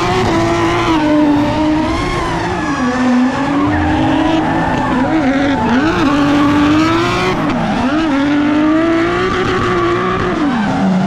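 Tyres screech and squeal on the tarmac.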